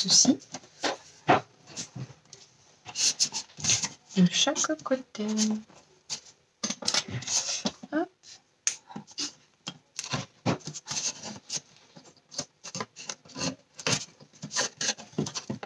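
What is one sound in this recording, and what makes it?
Clothespins click as they are clipped onto a cardboard box.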